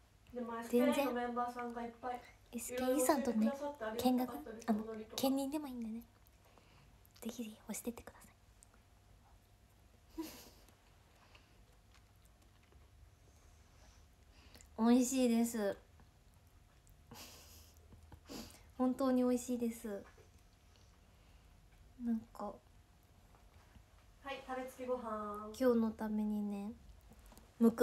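A young woman talks cheerfully and close to a microphone.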